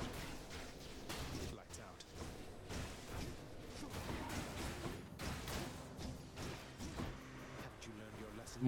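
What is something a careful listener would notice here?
Video game sword slashes and magic blasts crackle in quick bursts.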